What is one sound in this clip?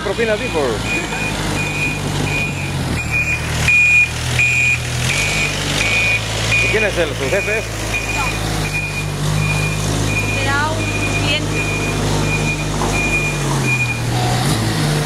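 A vehicle's warning alarm beeps steadily.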